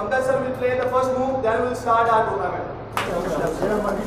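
A man speaks to a group.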